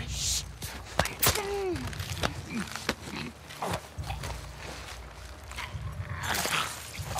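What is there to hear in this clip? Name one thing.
A man grunts and struggles in a chokehold.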